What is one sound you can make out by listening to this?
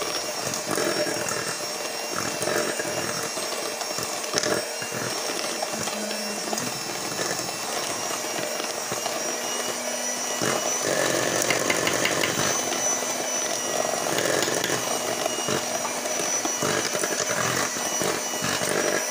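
Mixer beaters rattle against a metal bowl.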